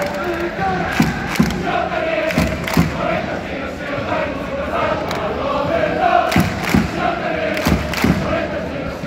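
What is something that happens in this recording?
A crowd of football supporters claps in rhythm.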